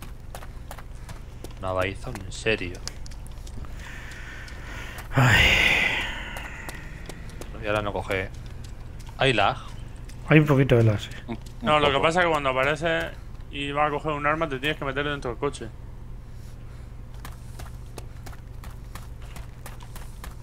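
Footsteps tread steadily on grass and gravel.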